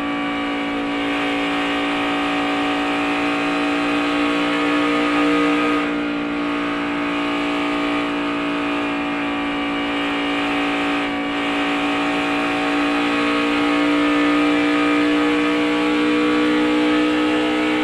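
A race car engine roars loudly at high speed with a steady high whine.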